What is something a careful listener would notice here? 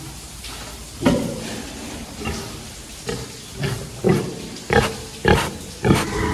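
A pig grunts loudly and snorts close by.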